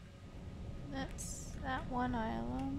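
A young woman speaks animatedly into a microphone.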